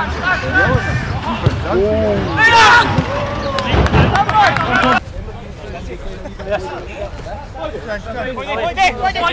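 Men shout and call out to each other across an open field outdoors.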